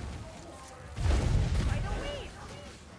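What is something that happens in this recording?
A pistol fires with a loud boom.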